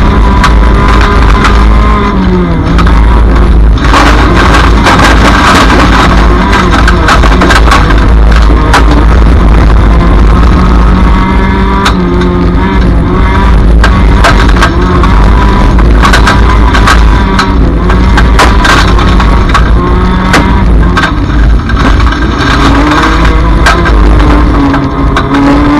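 A race car engine roars loudly close by, revving up and down.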